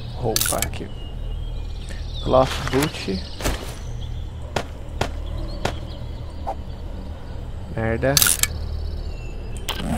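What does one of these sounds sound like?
Short interface clicks sound as items are selected and crafted.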